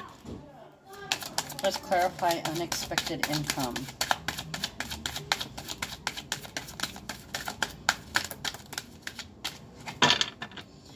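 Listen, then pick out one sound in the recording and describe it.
Playing cards are shuffled with quick, crisp riffling flicks.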